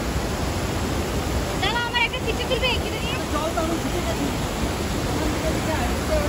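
A mountain stream rushes steadily over rocks.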